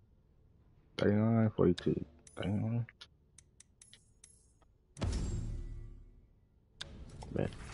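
Soft menu clicks and chimes sound as selections change.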